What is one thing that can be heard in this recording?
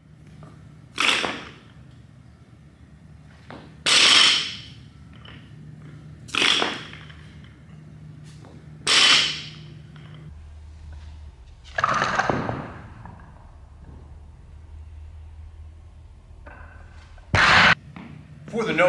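A loaded barbell drops onto the floor with a loud thud and clatter.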